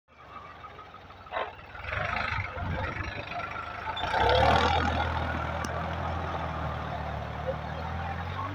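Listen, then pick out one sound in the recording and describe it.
A tiller churns through wet soil.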